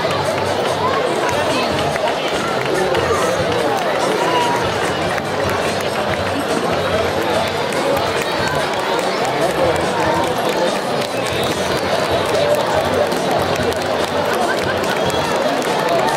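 A crowd of children and adults chatters loudly outdoors.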